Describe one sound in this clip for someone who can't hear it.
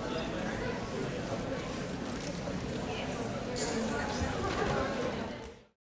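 A crowd of people murmurs and chatters in a large echoing hall.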